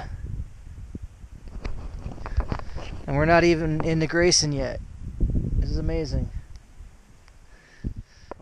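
Wind blows and rumbles against the microphone.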